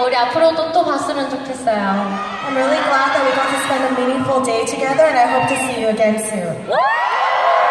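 A young woman speaks through a microphone over loudspeakers in a large echoing hall.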